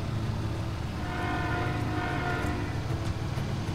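A train horn sounds.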